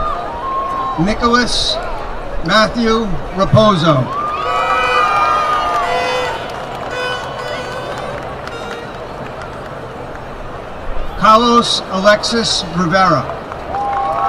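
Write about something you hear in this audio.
A crowd cheers and whoops outdoors.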